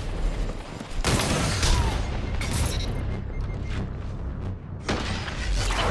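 Guns fire in quick, loud bursts.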